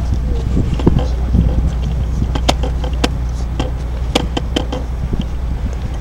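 Footsteps knock on wooden boards nearby.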